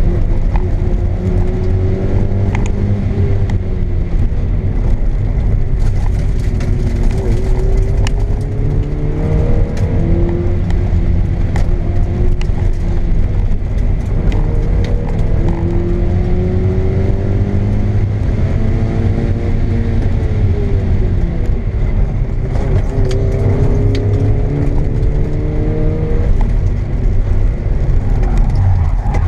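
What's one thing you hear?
A small car engine hums and revs up and down through the gears, heard from inside the car.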